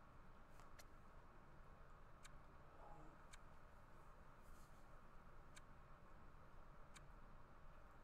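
A menu gives short soft clicks as the selection moves.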